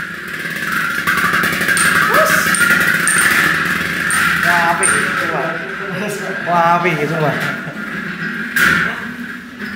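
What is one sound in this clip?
Spinning metal tops clink sharply against each other.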